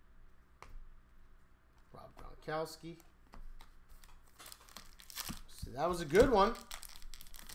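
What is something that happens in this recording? Trading cards rustle and click as they are handled.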